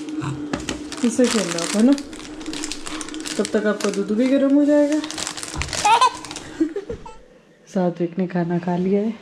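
A baby babbles and whines close by.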